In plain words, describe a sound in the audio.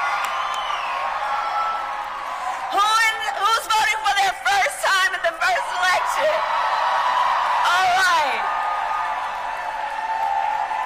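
A large crowd cheers and shouts throughout.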